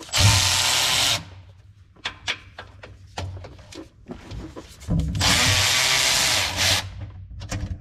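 A cordless power tool whirs in short bursts.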